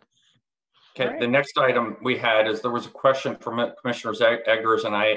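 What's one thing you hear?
An older man speaks steadily over an online call.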